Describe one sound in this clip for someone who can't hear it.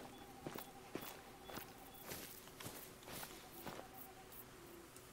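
Footsteps thud at a steady walking pace.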